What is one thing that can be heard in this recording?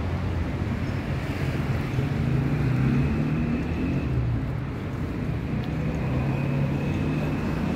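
Women talk quietly nearby outdoors.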